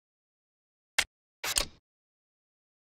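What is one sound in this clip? A short click sounds as a track piece snaps into place.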